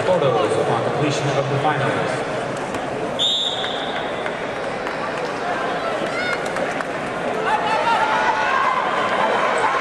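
Wrestling shoes squeak on a mat.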